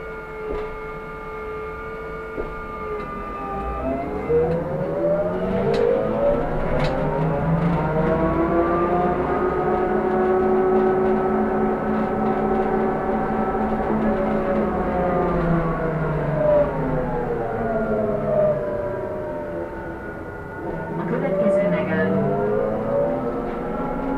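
A bus motor whines loudly, rising in pitch as the bus speeds up and falling as it slows down.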